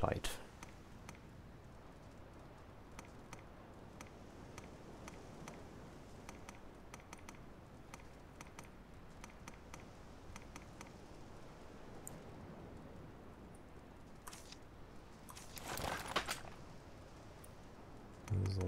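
Soft interface clicks tick again and again as menu items change.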